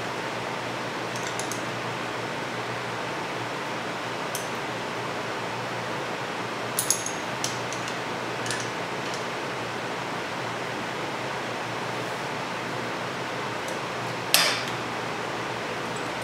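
Metal tools click and clink against a bolt.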